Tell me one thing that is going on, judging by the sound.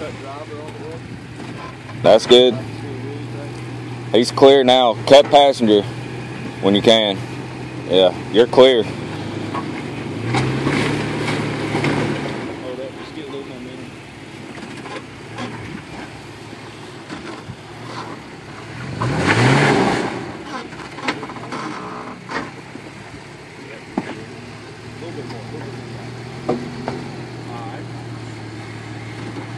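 A vehicle engine idles with a low, steady rumble.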